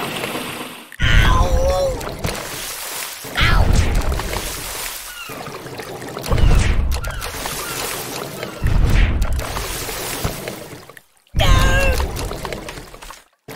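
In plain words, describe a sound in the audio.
Cartoon explosions boom loudly, one after another.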